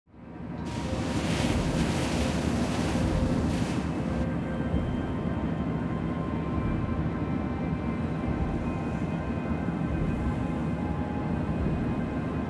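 Rough sea waves surge and splash against a submarine's hull.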